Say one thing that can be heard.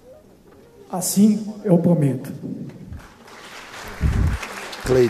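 A man speaks firmly into a microphone in a large echoing hall.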